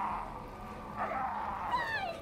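An elderly man growls angrily.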